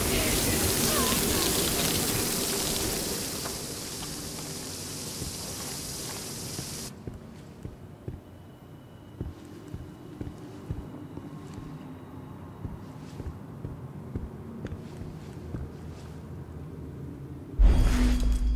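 Footsteps walk and run over a hard, gritty floor.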